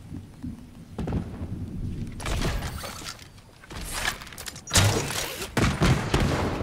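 Wooden building pieces snap into place with quick knocks.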